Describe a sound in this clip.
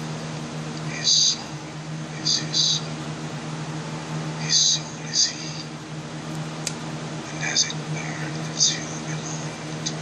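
A pencil scratches and scrapes across paper in short strokes.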